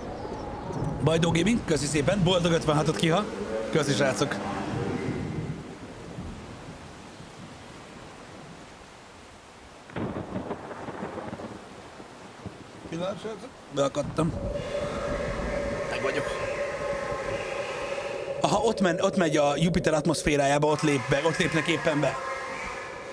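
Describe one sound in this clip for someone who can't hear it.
A young man talks and laughs close to a microphone.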